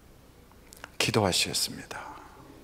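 A middle-aged man speaks loudly into a microphone in an echoing hall.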